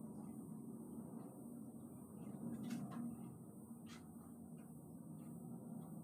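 Fabric rustles softly as a scarf is wrapped.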